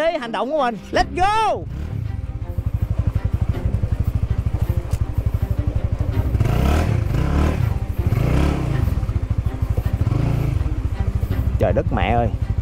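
A motorbike engine chugs with a steady, low throbbing.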